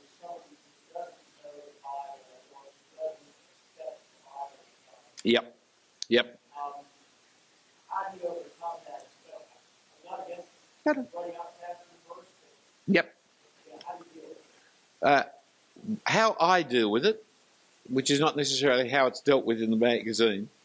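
An elderly man speaks calmly into a microphone, reading out.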